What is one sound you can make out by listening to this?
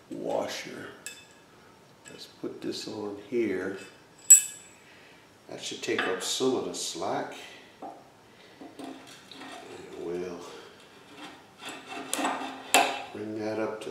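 A metal bolt knocks and clinks against a metal bracket.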